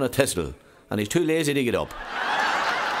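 A middle-aged man tells a joke with animation.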